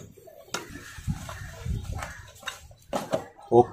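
A large leaf rustles as hands press it flat.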